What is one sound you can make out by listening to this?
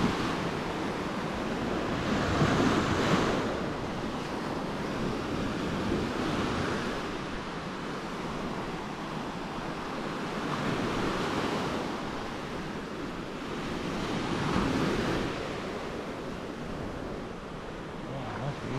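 Small waves wash up onto a sandy shore and hiss as they pull back.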